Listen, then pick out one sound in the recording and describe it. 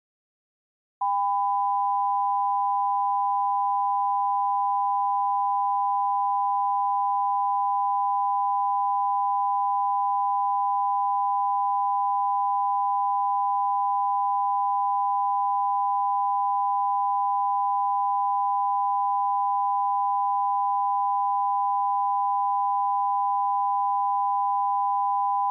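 A steady, high test tone beeps without a break.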